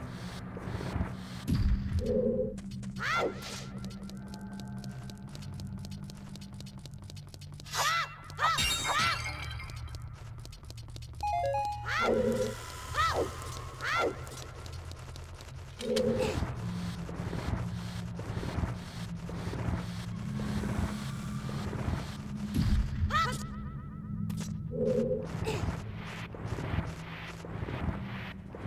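Video game music plays steadily throughout.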